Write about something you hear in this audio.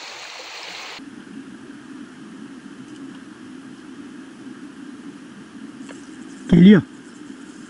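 A slow stream flows quietly.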